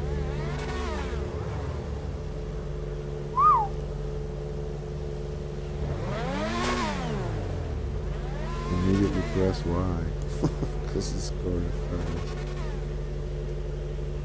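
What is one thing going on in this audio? Racing car engines idle with a steady hum.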